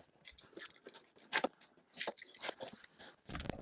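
A blade slices and scrapes through cardboard.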